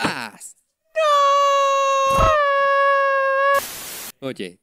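A trumpet blares one held note.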